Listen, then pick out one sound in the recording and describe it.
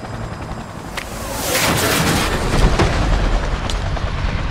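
An explosion roars and rumbles.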